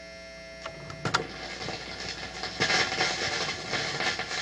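Music plays from a spinning vinyl record.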